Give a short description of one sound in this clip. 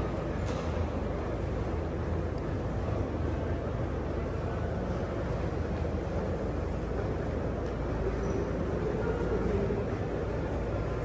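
A train idles with a low steady hum.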